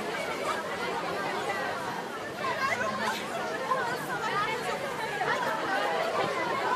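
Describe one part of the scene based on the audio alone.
A large crowd of young men and women chatter and shout outdoors.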